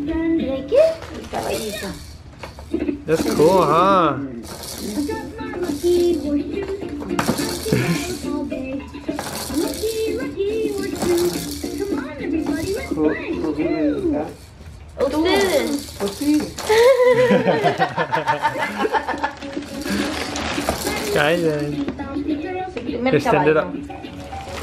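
A toy plays a cheerful song with a bright singing voice.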